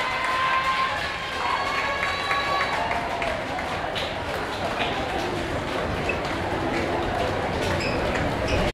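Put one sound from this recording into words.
A crowd of performers chants and shouts.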